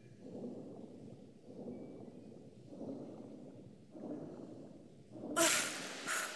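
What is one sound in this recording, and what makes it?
A swimmer strokes through water underwater with muffled whooshes.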